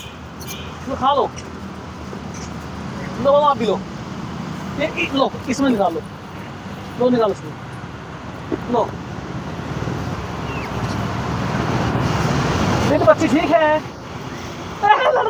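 Monkeys squeal and chatter nearby.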